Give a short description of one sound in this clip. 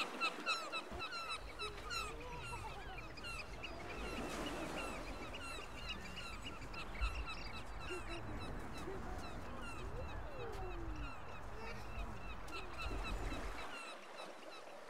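Wind gusts outdoors with a low rumble.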